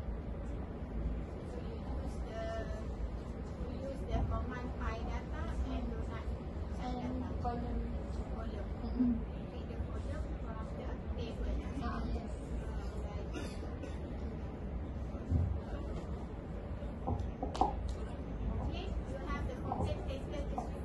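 A young woman presents over a microphone and loudspeakers from a distance in a large echoing hall.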